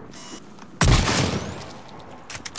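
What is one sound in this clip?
A rifle shot blasts with a loud explosion.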